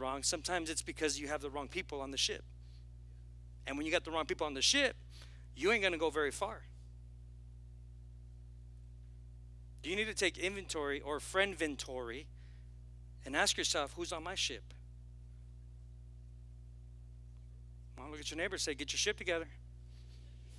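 A man speaks with animation into a headset microphone, in bursts with pauses.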